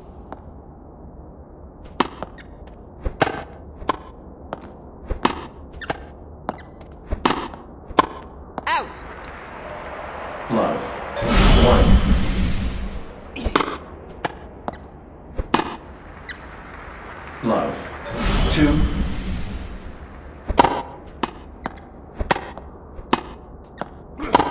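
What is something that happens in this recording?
A tennis racket strikes a ball with sharp pops, again and again.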